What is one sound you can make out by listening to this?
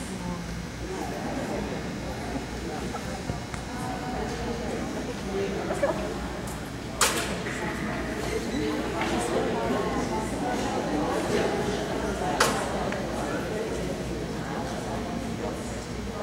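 A woman calls encouragement to a dog in a large echoing hall.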